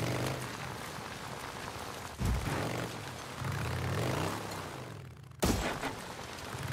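Tyres crunch on loose gravel and dirt.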